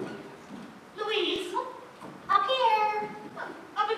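A young woman speaks loudly in an echoing hall.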